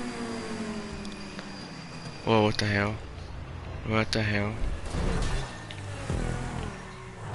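A car engine roars at high revs.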